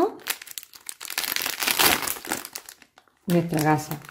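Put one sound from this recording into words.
A paper and plastic wrapper crinkles as it is opened.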